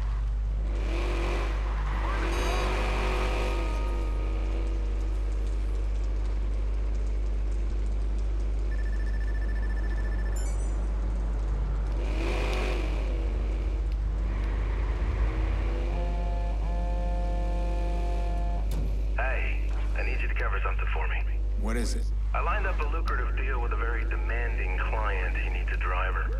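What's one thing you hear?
A car engine hums steadily as the car drives.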